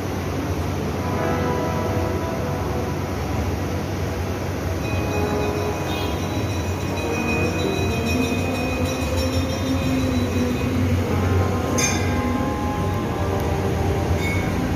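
Ceiling fans whir steadily overhead.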